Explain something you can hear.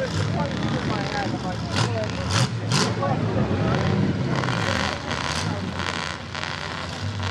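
A truck engine roars loudly.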